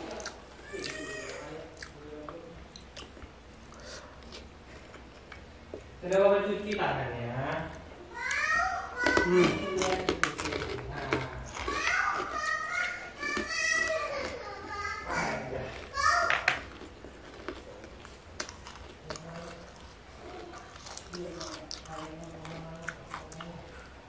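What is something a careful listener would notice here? A young man chews and smacks his lips loudly.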